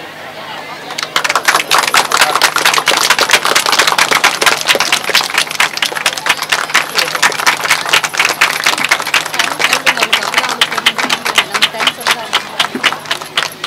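A crowd claps and applauds steadily.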